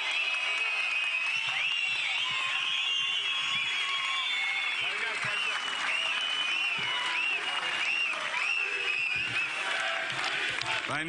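Many people in a large crowd whistle shrilly.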